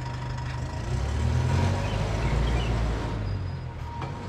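A bus engine rumbles as the bus drives past close by.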